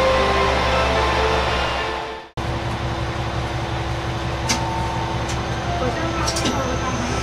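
A train's engine idles with a steady low hum.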